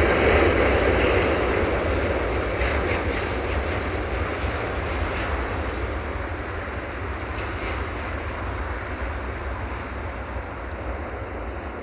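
A freight train rolls away along the tracks, its wheels rumbling and slowly fading.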